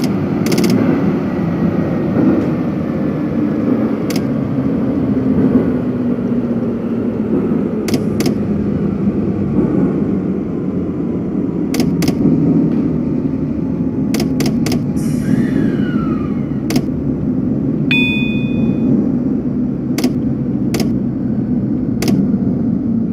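Train wheels click over rail joints at intervals.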